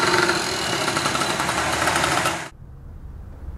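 A motor tricycle putters past.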